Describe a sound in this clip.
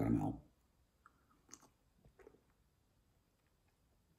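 A man sips and gulps a drink.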